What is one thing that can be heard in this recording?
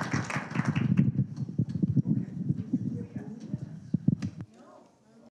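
People in an audience murmur and chat.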